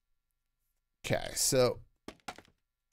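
A man speaks briefly and with animation into a microphone.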